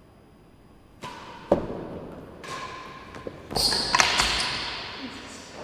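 A ball thuds sharply against a wall and echoes around a large hall.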